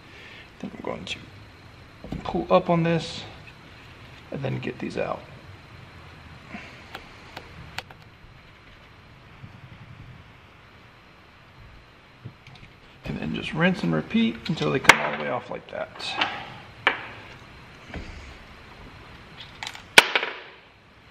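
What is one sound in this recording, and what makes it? A heavy metal engine part clinks and scrapes against metal.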